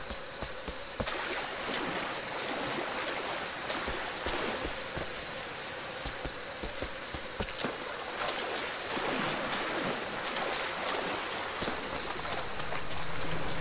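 Rain falls steadily all around.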